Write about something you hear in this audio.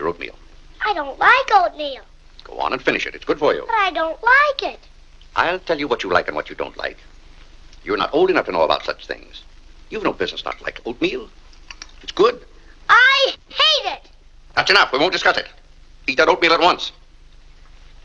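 A young boy talks with animation, close by.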